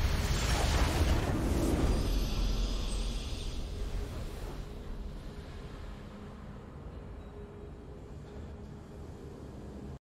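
A triumphant musical fanfare swells and slowly fades.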